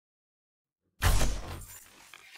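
An arrow is released from a bow.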